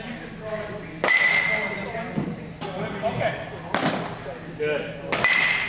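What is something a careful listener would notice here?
A pitched baseball strikes a net with a sharp, ringing smack.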